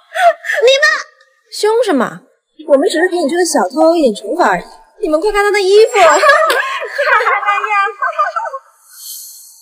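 A young woman speaks mockingly nearby.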